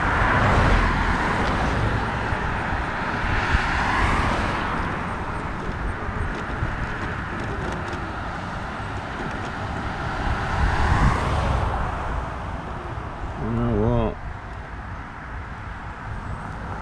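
Wind rushes and buffets loudly while riding outdoors.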